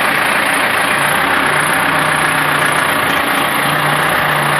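A forklift engine runs with a steady low hum.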